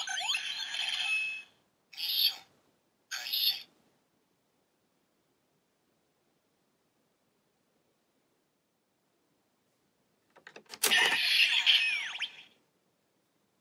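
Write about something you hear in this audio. A toy belt plays loud electronic sound effects in short bursts.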